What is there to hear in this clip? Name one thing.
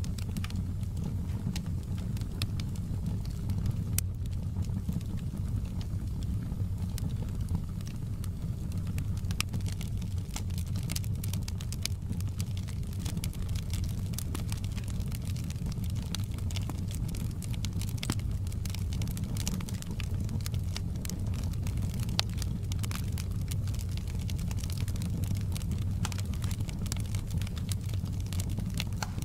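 A wood fire crackles and pops with sharp snaps.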